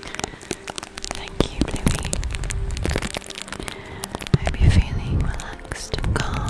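A soft brush sweeps over a microphone with a rustling scratch.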